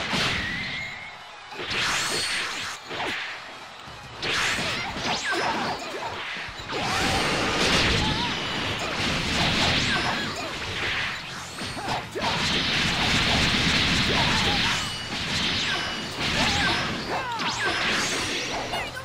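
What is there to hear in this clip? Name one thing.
Punches and kicks land with sharp impacts.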